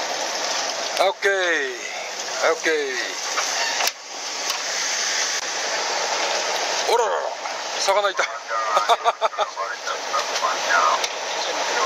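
A man calls out across the deck.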